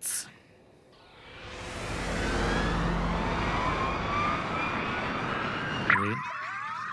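A spaceship engine swells into a rising whoosh.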